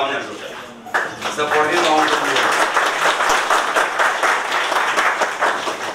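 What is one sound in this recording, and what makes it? A crowd applauds loudly in an echoing hall.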